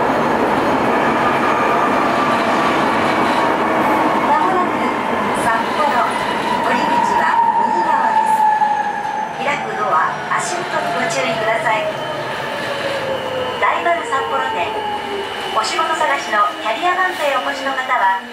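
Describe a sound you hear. A train's motor whines and falls in pitch as the train slows down.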